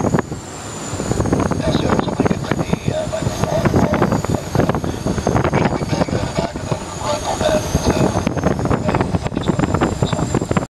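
A small plane's engine drones steadily with a loud, even roar.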